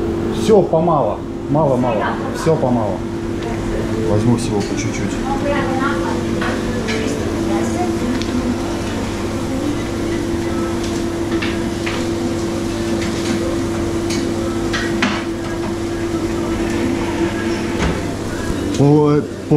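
A steady electric hum fills the room.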